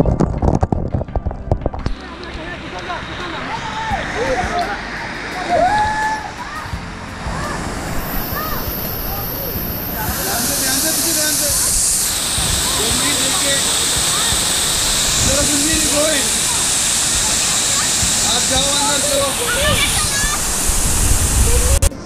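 A waterfall roars and splashes loudly.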